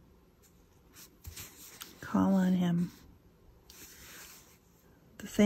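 Fingers brush softly across a paper page.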